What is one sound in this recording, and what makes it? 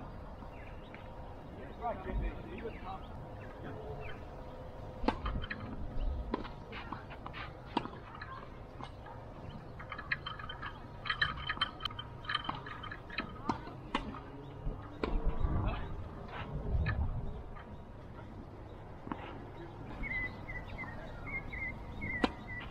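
Tennis balls are struck sharply with rackets.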